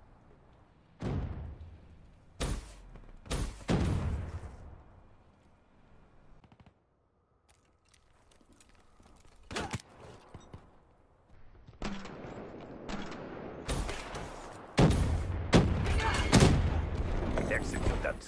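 Gunfire bursts in loud, sharp volleys.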